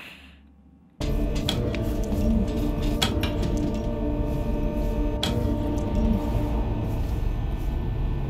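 A loud, steady game soundscape hums and rumbles with occasional sharp clicks.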